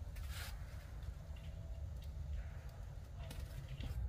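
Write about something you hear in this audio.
Tomatoes thud softly into a woven basket.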